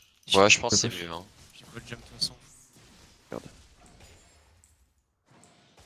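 Game spell effects zap and crackle.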